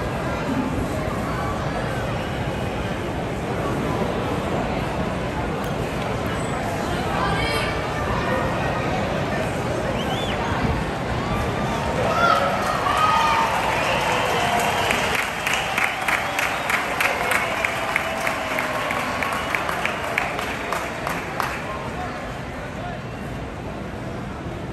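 A large stadium crowd murmurs and chatters all around.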